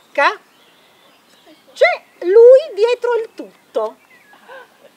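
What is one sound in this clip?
A young child shouts and squeals excitedly nearby.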